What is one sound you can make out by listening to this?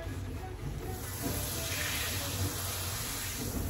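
Water sprays from a shower head and hisses onto the tray.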